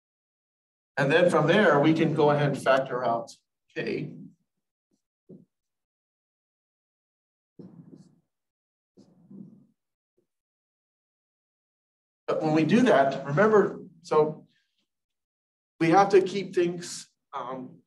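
A man lectures calmly and clearly at close range.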